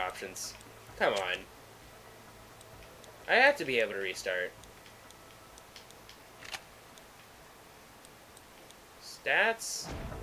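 A menu clicks as selections change.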